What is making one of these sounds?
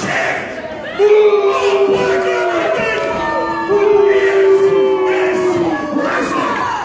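A man announces through a loudspeaker, drawing out his words.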